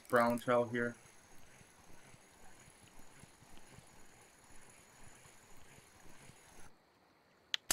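A fishing reel clicks softly as it winds in line.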